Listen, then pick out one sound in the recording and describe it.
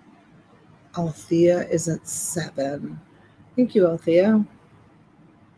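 A woman speaks calmly and close, as if over an online call.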